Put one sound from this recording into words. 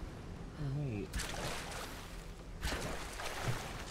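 Water splashes as someone wades through a stream.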